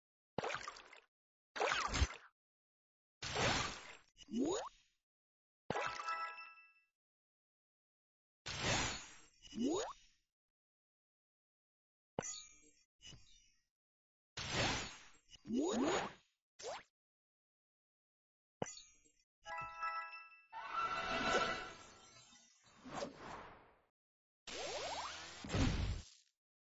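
Puzzle blocks burst with short whooshing, popping game sound effects.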